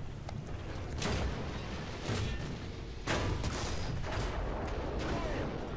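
Shells explode with loud booms, one about every second.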